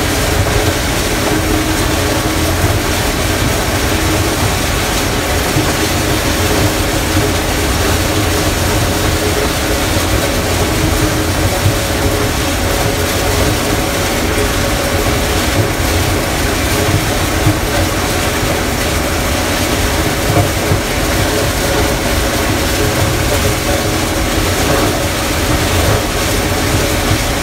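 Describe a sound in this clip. Corn stalks rustle and crack as a harvester cuts through them.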